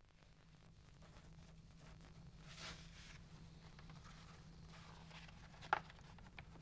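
Paper rustles as it is rolled and handled.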